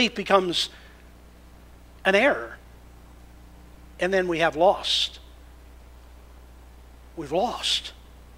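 A man preaches with animation through a microphone, in short bursts with pauses.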